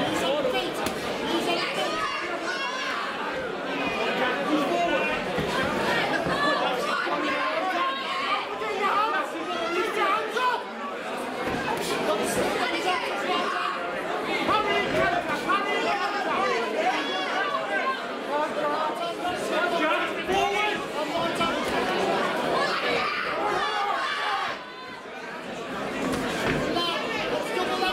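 A crowd of men shouts and cheers loudly in an echoing hall.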